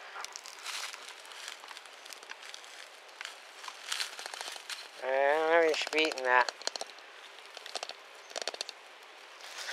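A dog gnaws and crunches on a bone.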